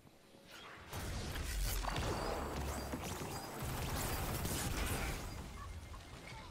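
An explosion roars and rumbles.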